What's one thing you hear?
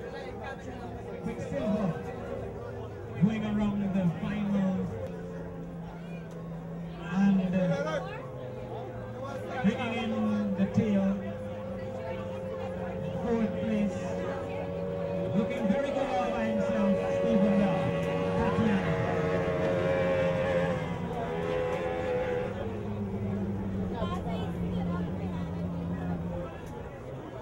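A racing boat engine drones steadily across the water.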